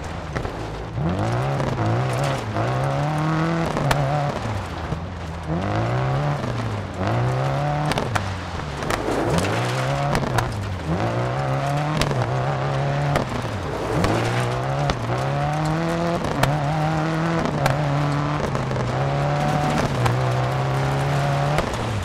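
A rally car engine revs hard and shifts up and down through the gears.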